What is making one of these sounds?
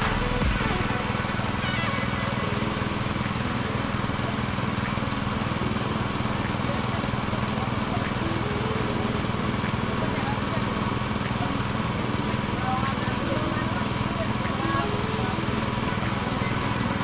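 An engine runs with a steady drone.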